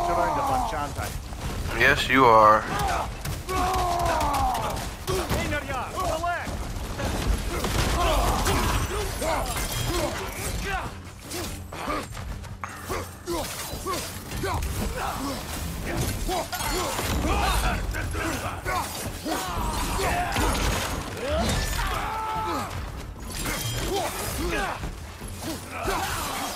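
A man grunts and shouts as he fights.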